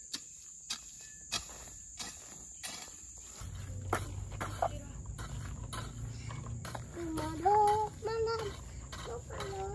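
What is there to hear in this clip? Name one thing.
A metal hoe chops rhythmically into dry soil.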